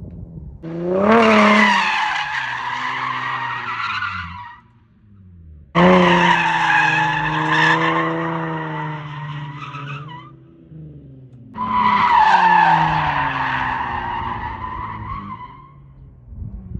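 Car tyres screech as the car slides around a track.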